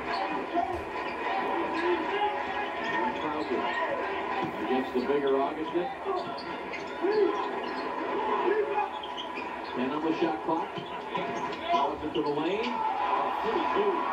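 A crowd murmurs and cheers in a large echoing arena, heard through a television speaker.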